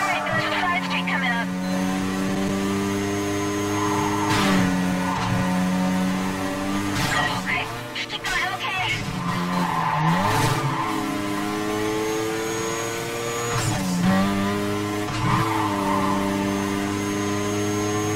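A racing car engine roars at high revs, dropping briefly with each gear shift.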